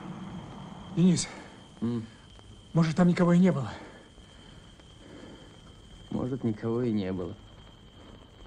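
A man speaks tensely nearby.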